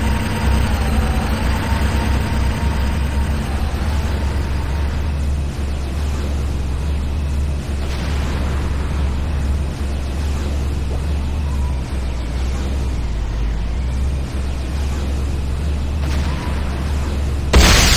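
A hovering vehicle's engine hums low and steady.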